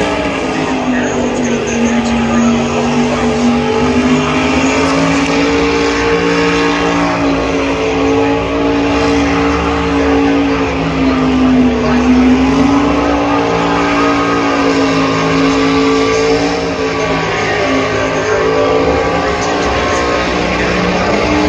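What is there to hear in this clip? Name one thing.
Tyres squeal and scrub on pavement.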